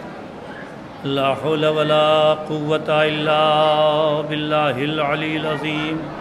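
A middle-aged man chants loudly and melodically through a microphone.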